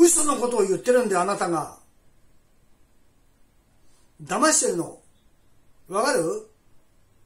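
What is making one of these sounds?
A middle-aged man speaks into a phone close by in short, calm bursts.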